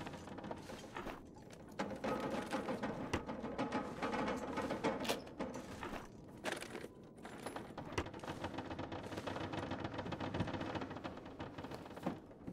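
A wooden drawer rattles as it is searched through.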